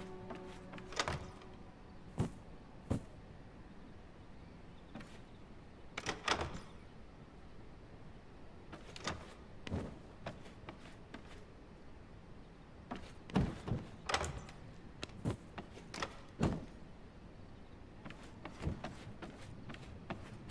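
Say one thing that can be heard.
Soft interface clicks and taps sound as menus open and close.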